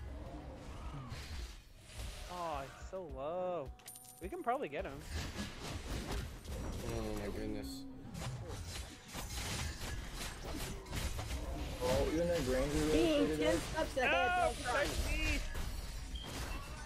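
Video game spells whoosh and clash.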